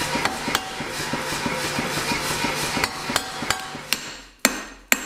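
A power hammer pounds with a loud roar.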